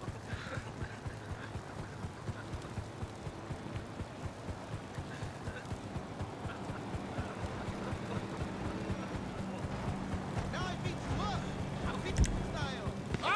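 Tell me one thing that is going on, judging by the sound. A helicopter hovers nearby with a steady drone.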